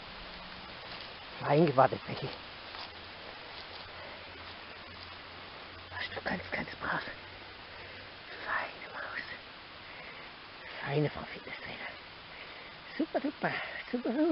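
A small dog's paws rustle through dry grass.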